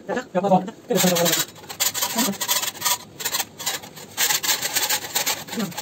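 A paint scraper scrapes flaking plaster off a ceiling.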